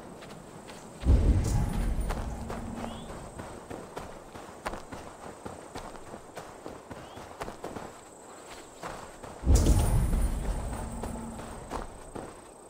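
A deep booming whoosh swells and slowly fades.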